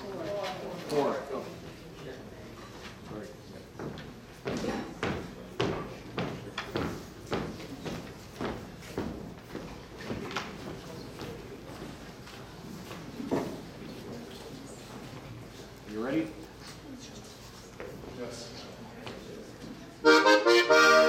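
A crowd of men and women murmur and call out.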